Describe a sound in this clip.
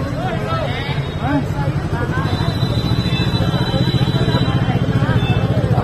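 A crowd of young men talk and shout over one another nearby.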